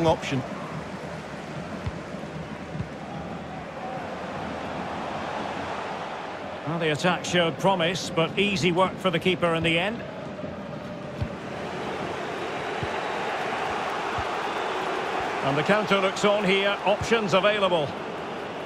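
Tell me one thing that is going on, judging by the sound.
A stadium crowd roars steadily.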